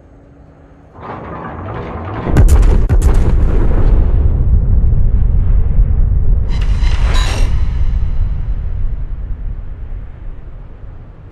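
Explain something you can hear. Heavy guns boom with a deep rolling rumble.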